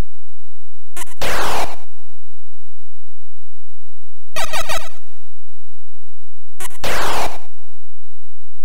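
A harsh electronic hiss sweeps down in pitch.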